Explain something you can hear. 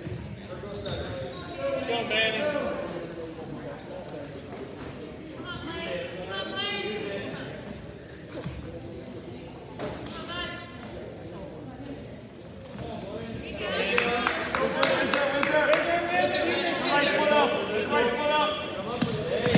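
Wrestlers' feet and bodies thump on a mat.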